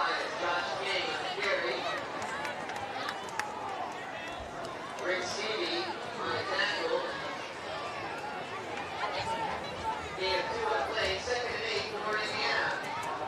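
A crowd of spectators chatters nearby outdoors.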